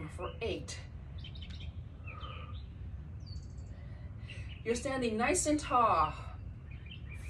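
A woman speaks calmly and encouragingly nearby.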